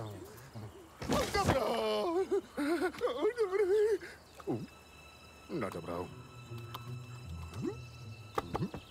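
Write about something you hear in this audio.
A cartoon creature babbles and squeals in a high, excited voice.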